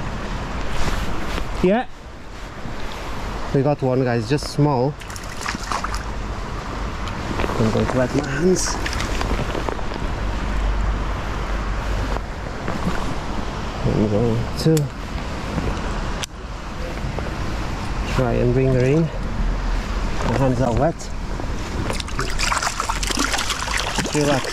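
A shallow stream burbles and flows steadily.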